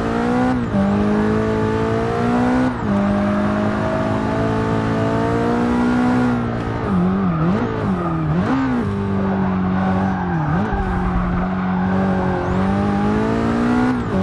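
A racing car engine roars loudly, rising in pitch as it speeds up and dropping sharply at each gear change and when braking.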